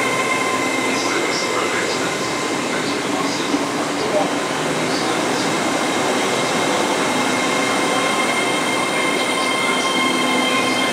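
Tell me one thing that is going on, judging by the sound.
A train rumbles past close by along the platform.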